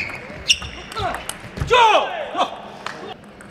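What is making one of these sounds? Sneakers squeak on the floor as players move.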